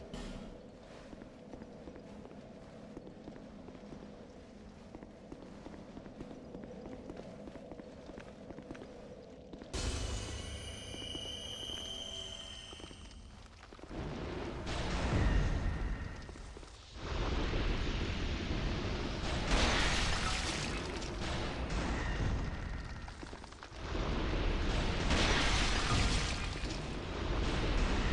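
Footsteps scrape on stone.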